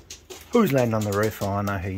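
A pigeon's wings flap as it flies.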